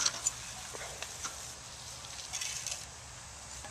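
Boots shuffle on loose sandy soil.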